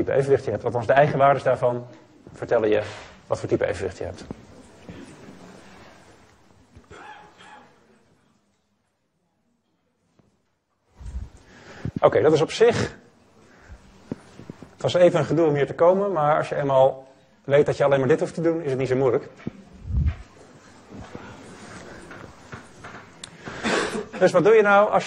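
A young man lectures calmly through a microphone, pausing now and then.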